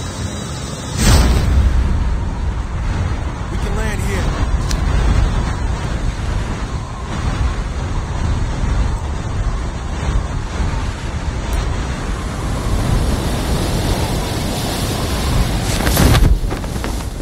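Wind rushes loudly past during a fast fall.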